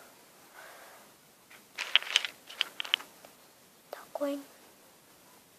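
A young girl speaks softly close by.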